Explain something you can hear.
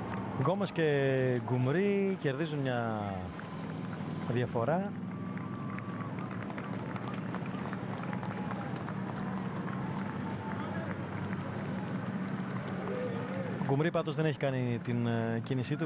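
A crowd cheers and murmurs along a street outdoors.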